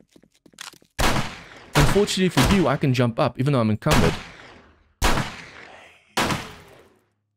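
A gun fires loud single shots.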